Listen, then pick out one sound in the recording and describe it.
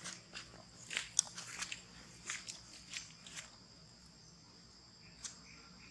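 A monkey chews and crunches on fruit.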